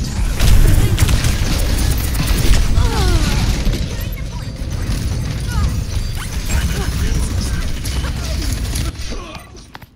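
Guns fire in rapid bursts with loud impacts.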